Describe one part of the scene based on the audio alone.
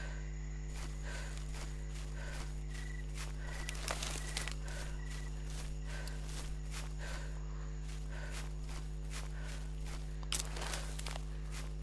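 Footsteps rustle steadily through grass and undergrowth.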